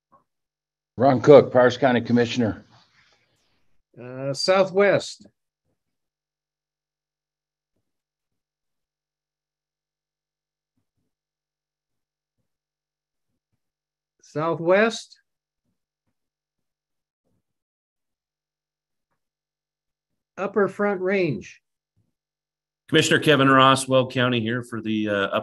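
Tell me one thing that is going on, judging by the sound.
Men speak in short bursts over an online call, with pauses of silence between them.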